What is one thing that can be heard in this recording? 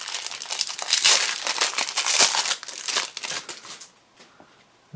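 A plastic wrapper crinkles and rustles in hands close by.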